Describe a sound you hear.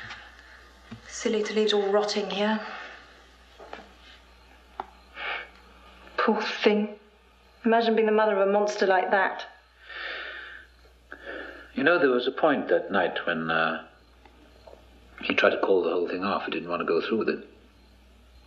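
A man speaks in a low, weary voice.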